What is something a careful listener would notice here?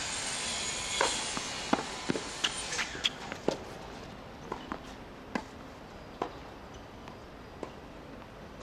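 Tennis rackets strike a ball back and forth with sharp pops.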